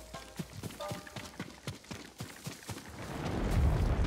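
Footsteps patter through grass.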